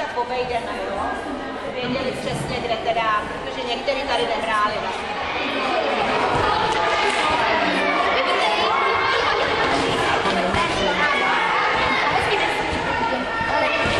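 Many children chatter and call out in a large echoing hall.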